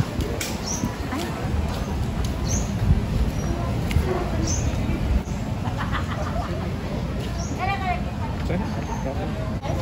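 Footsteps tread along a paved path outdoors.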